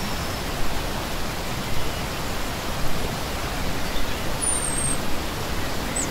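A shallow stream rushes and splashes steadily over rocks close by.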